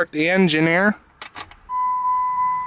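Keys jingle and click into an ignition.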